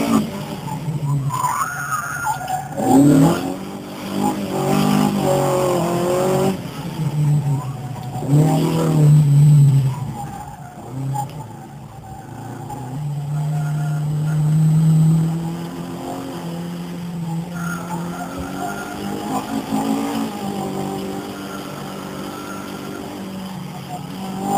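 A car engine hums and revs while driving.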